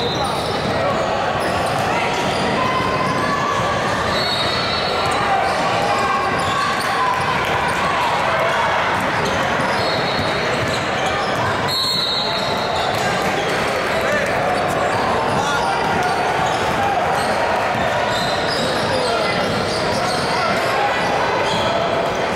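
Many voices chatter throughout a large echoing gym.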